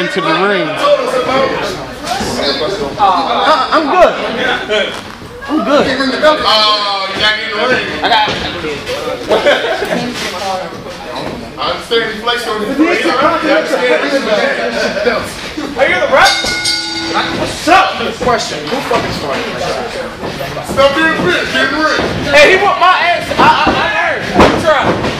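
Men talk and shout with animation nearby in an echoing hall.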